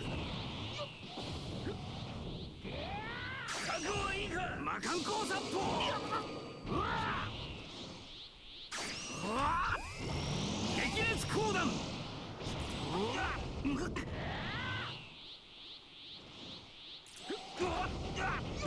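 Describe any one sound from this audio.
A crackling energy aura roars and whooshes.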